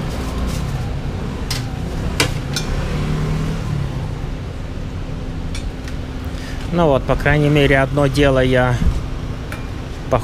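Metal tongs clink against metal trays.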